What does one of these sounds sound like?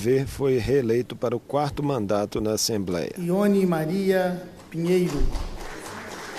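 An elderly man speaks firmly into a microphone in a large echoing hall.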